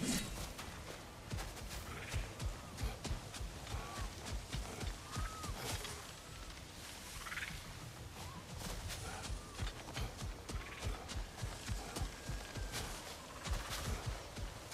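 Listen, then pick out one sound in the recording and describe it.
Heavy footsteps thud on the ground as an armoured warrior walks.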